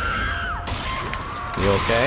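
A creature snarls and screeches close by.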